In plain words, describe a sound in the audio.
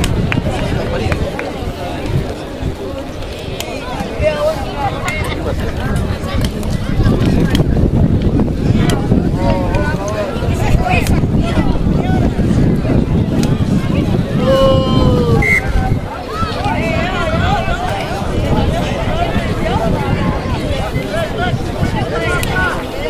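Players call out to one another from a distance.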